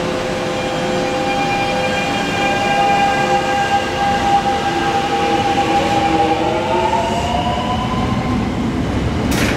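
A train's electric motors whine, rising in pitch as it pulls away.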